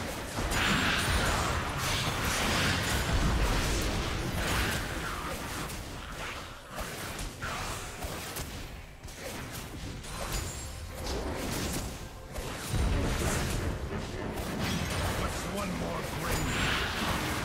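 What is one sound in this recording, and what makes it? Magic blasts, hits and explosions crackle and boom in a hectic game battle.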